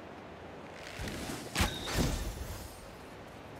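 A sharp magical whoosh bursts out with loud thumps.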